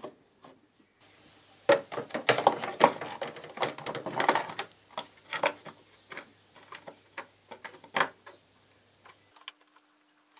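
A screwdriver scrapes and clicks against metal.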